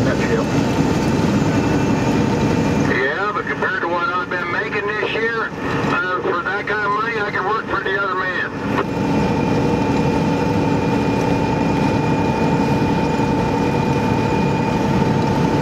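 A car engine hums and tyres roar steadily on a highway.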